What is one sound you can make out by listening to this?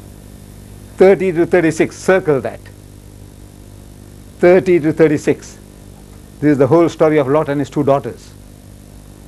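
An elderly man speaks calmly in short phrases, as if lecturing.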